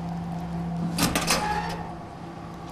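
A metal locker door creaks open.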